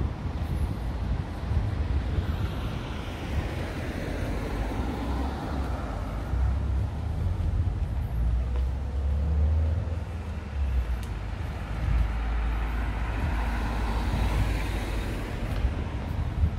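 Wind buffets the microphone outdoors with a low rumble.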